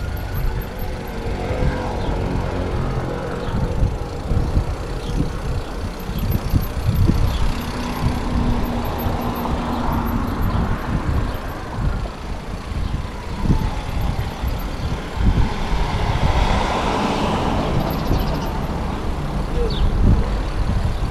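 Bicycle tyres rattle and bump over paving stones.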